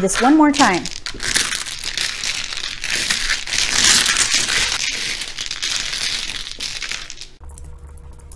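Mahjong tiles clatter and rattle as they are shuffled across a table.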